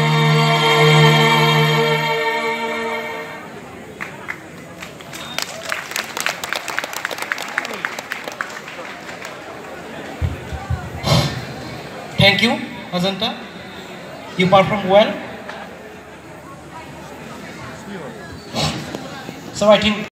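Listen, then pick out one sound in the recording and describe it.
Loud music plays over loudspeakers in an open space.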